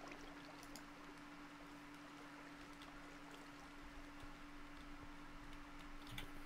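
Water trickles and flows softly.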